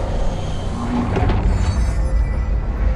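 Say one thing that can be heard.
Glass shatters loudly.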